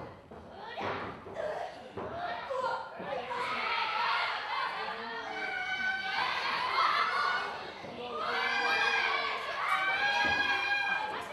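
Kicks land with sharp smacks on a wrestler's body.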